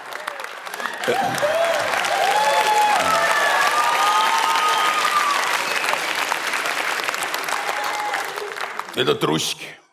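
A large audience laughs and applauds loudly.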